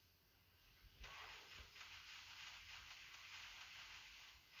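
A magic spell shimmers with a soft, steady hiss.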